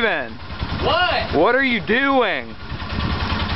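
A young man calls out close by in a voice that swoops up and down.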